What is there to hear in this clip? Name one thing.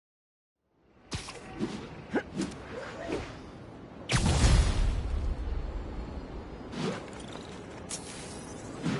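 Wind rushes loudly past while swinging through the air.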